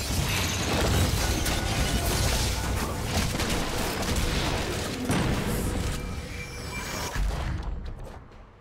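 Spell blasts and hits crackle and boom in a busy fight.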